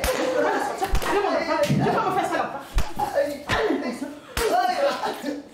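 A hand slaps someone's back with sharp smacks.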